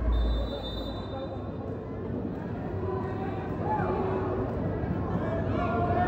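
A crowd murmurs in a large echoing indoor arena.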